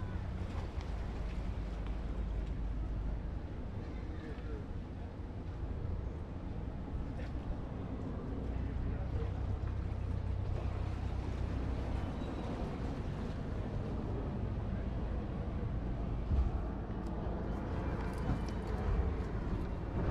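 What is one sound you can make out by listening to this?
A ferry engine rumbles low and steady.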